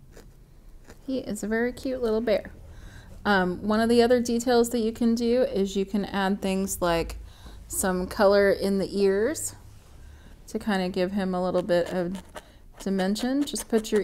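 A woman talks calmly and steadily, close to a microphone.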